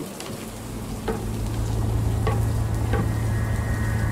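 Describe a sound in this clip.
Footsteps tread slowly on a hard floor.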